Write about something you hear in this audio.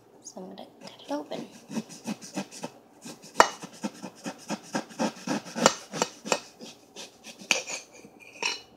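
A knife slices through a tomato with soft crunching clicks.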